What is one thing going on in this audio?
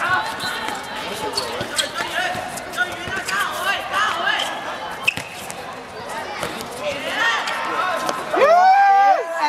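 Young boys shout to each other.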